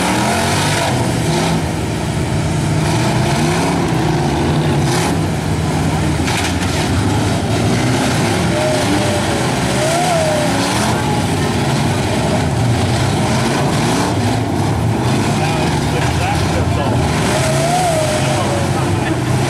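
A crowd murmurs outdoors in the distance.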